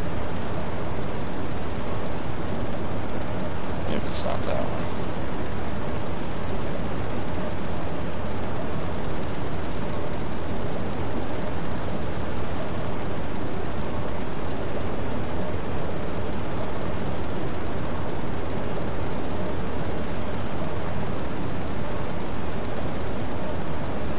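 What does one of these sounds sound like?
Sea waves rush and wash steadily.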